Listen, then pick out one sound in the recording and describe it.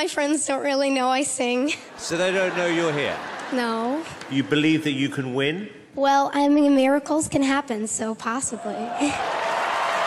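A young girl sings into a microphone.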